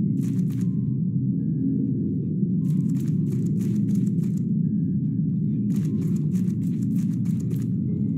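Footsteps thud on a hard floor in short bursts.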